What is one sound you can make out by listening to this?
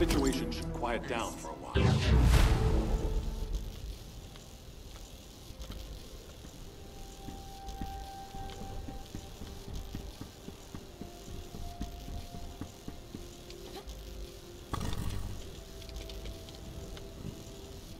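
Footsteps thud quickly on hard ground and metal as a figure runs.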